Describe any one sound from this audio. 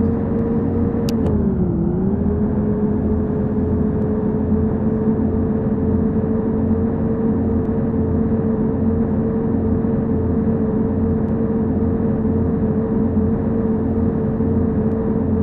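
A bus engine hums steadily at cruising speed.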